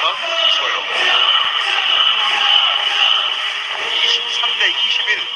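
A large crowd cheers and chatters in an echoing arena.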